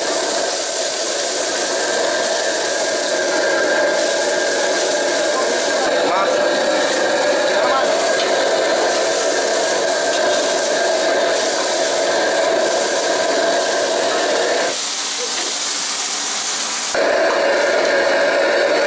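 Food sizzles and hisses loudly in a hot wok.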